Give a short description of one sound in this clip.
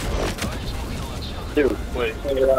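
A large explosion booms and rumbles.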